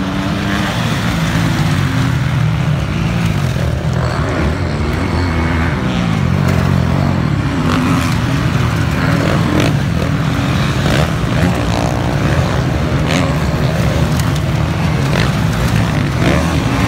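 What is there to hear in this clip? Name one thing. Dirt bike engines roar and rev loudly nearby.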